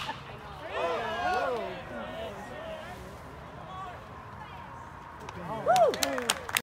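Young men shout and call out from a distance outdoors.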